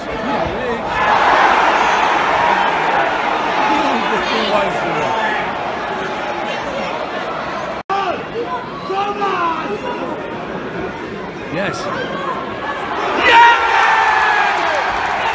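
A crowd of fans roars and cheers loudly, then the noise fades.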